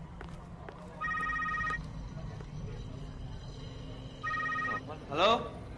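A phone rings twice nearby.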